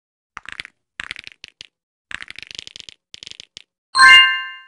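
Quick game pops and clicks sound as items are collected.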